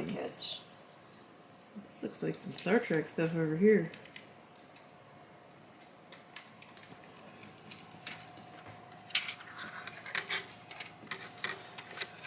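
A thin plastic sheet rustles and crinkles in someone's hands.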